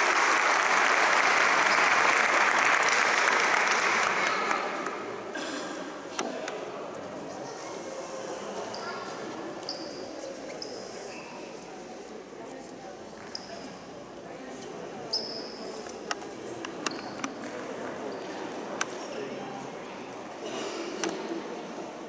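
Young children chatter and call out in a large echoing hall.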